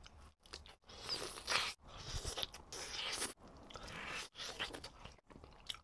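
A man bites and chews crunchy fried food close up.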